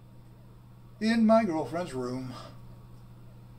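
A young man speaks casually into a nearby microphone.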